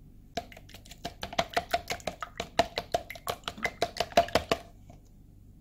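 A whisk clatters quickly against the inside of a plastic cup.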